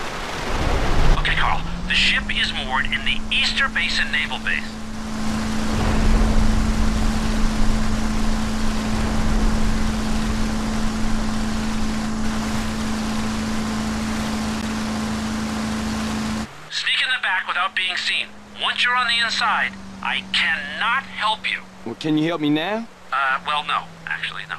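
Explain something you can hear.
A motorboat engine starts and drones steadily.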